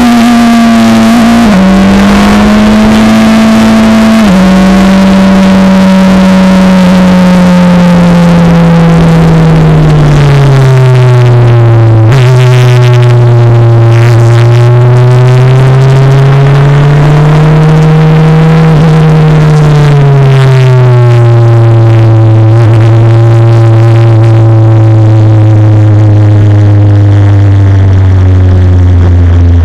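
A four-cylinder Formula Renault 2.0 racing car's engine screams at high revs, heard from the cockpit.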